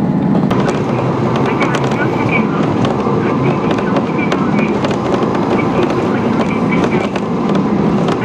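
Train wheels click and rattle over rail joints.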